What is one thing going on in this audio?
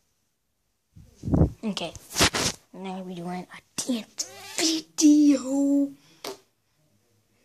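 A young boy talks playfully and makes silly voice sounds close to the microphone.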